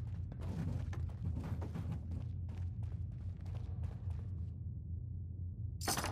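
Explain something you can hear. Footsteps crunch on gritty ground.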